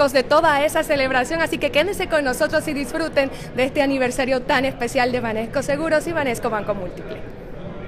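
A young woman speaks brightly and close into a microphone.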